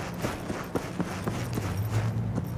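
A car engine hums as cars drive along a road nearby.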